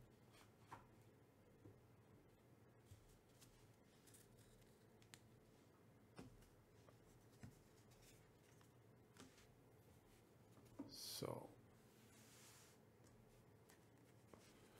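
Cards rustle and tap softly as hands handle them.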